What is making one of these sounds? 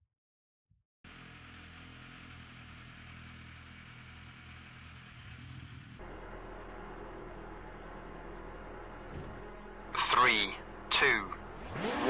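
A rally car engine idles with a steady low rumble.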